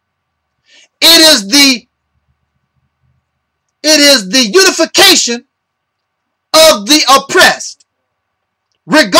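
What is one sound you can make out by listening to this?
A man speaks close to a microphone in short, emphatic bursts with pauses between them.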